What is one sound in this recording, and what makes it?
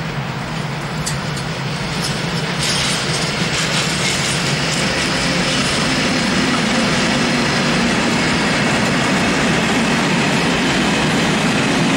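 Train wheels squeal and clatter over rail joints.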